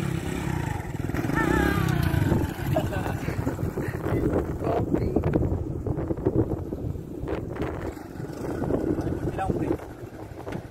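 A motorcycle engine hums as the bike rides past on a road.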